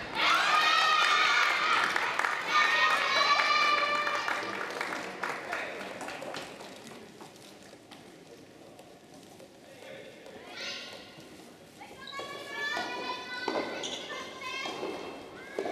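A tennis ball is struck with a racket.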